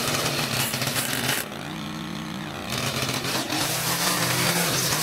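A string trimmer's engine whines loudly, easing off briefly and then revving up again.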